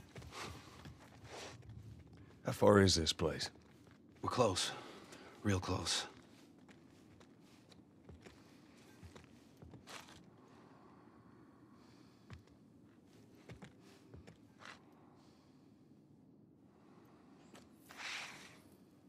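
Footsteps thud softly on a wooden floor.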